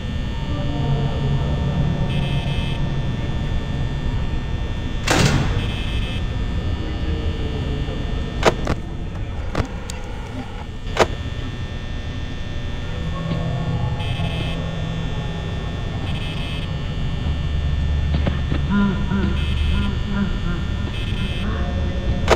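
A desk fan whirs steadily.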